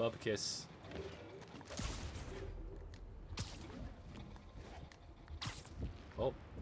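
Web lines shoot out with short, sharp whooshes as a figure swings between buildings.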